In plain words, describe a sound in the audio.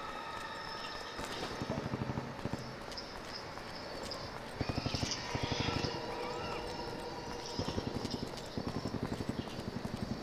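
Footsteps tread steadily over grass.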